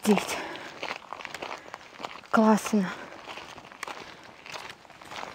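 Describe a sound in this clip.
Feet crunch steadily on a gravel path.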